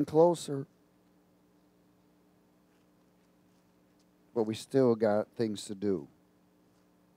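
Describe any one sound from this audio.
A middle-aged man reads aloud calmly through a headset microphone, with long pauses.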